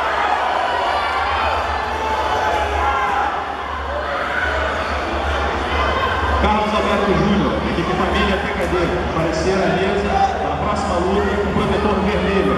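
A man referee calls out commands nearby.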